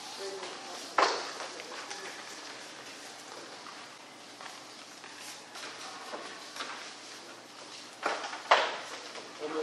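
Paper rustles and thumps on a table.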